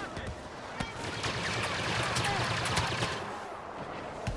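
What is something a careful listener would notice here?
Blaster guns fire rapid laser shots.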